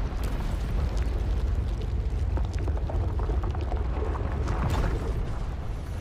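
Footsteps crunch slowly on gravel.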